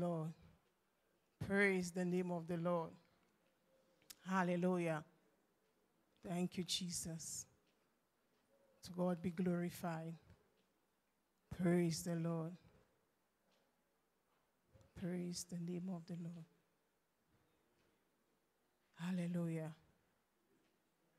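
A woman sings short phrases through a microphone, pausing between them.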